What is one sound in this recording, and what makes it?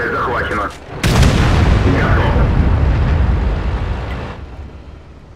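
A tank cannon fires with a loud, booming blast.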